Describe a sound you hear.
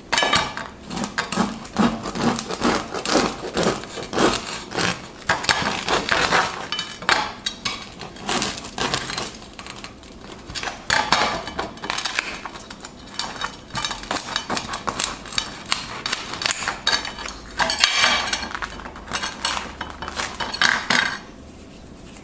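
Crusty bread crackles as hands squeeze and break it.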